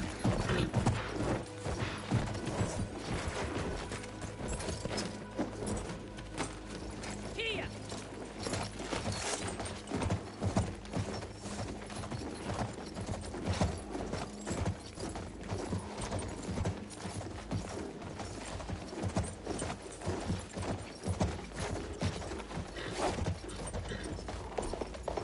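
Horse hooves gallop steadily over sand.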